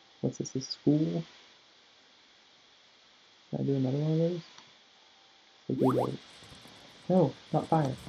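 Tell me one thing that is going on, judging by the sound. A young man speaks in short bursts close to a microphone.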